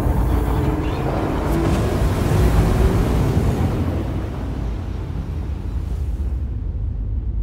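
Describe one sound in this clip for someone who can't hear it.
A rushing whoosh swells and then fades away.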